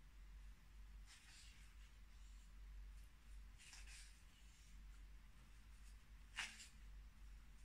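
Paper rustles softly as pages turn.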